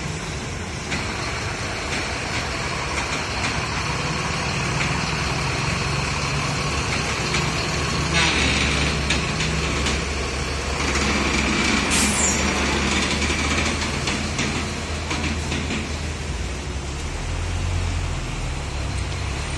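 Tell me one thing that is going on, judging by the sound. Large truck tyres roll over wet ground.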